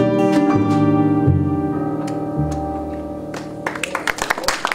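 A small jazz band plays to a close.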